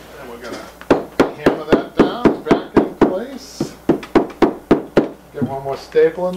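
A mallet knocks rapidly on wood.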